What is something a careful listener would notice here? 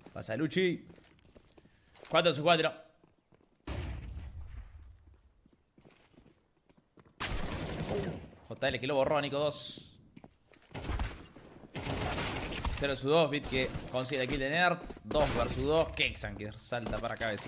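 A man talks with animation into a microphone.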